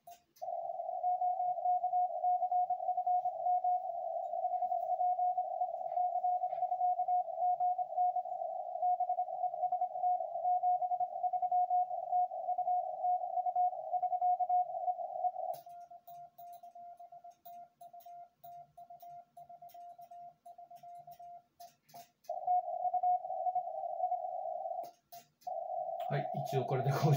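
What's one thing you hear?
A Morse code tone beeps steadily from a radio receiver, then turns quieter and choppy.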